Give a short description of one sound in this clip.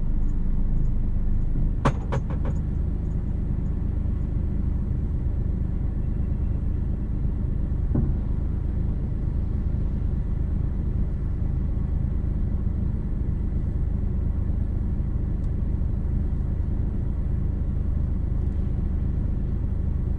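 A low, steady rumble of city traffic fills the street outdoors.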